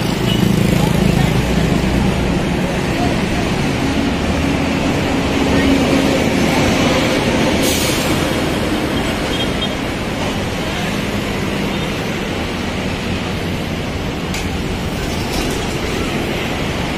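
Traffic rumbles along a busy street outdoors.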